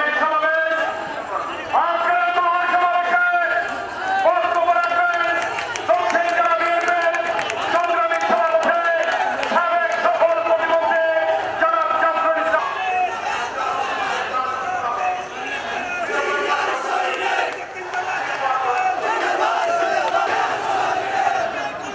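A large crowd of men chants slogans loudly in unison outdoors.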